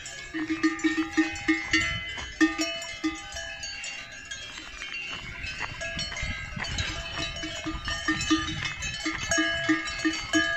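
Cowbells clang and jingle close by.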